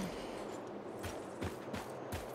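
Footsteps thud on soft ground.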